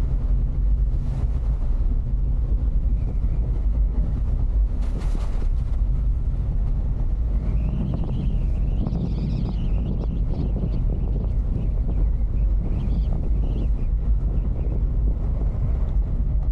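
Wind rumbles and buffets loudly throughout.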